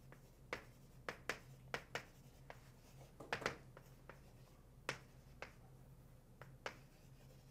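Chalk taps and scrapes sharply on a blackboard.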